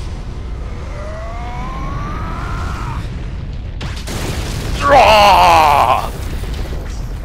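A huge creature roars loudly.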